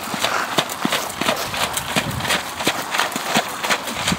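Hooves splash through shallow water.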